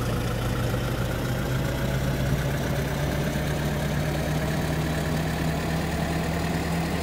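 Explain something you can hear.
A city bus engine drones as the bus drives along, its pitch rising slightly.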